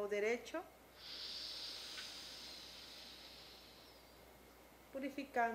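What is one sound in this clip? A woman breathes out slowly and steadily through her nose.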